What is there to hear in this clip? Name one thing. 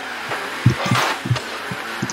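A ball is struck with a loud thump.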